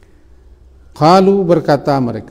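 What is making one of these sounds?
A middle-aged man speaks calmly into a close microphone.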